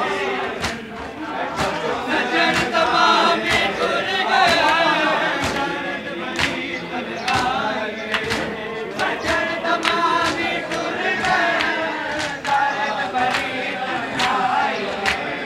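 A large crowd of men chants loudly together outdoors.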